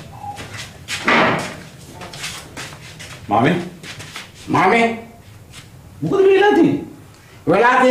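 A man speaks sharply in short bursts.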